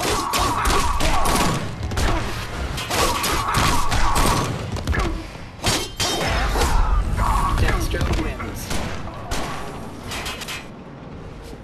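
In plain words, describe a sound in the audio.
Punches and kicks land with heavy thuds and cracks.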